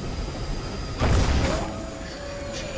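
A magical energy blast bursts with a loud whooshing roar.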